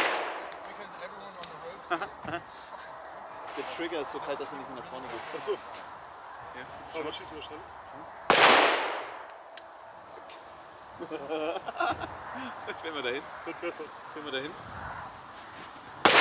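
A man talks calmly nearby between the shots.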